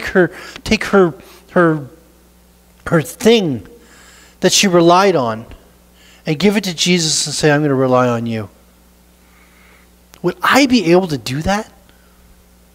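A middle-aged man speaks with animation through a microphone, pausing often.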